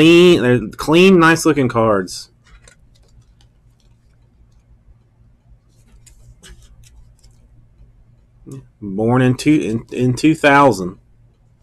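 A plastic card sleeve rustles and clicks softly in hands.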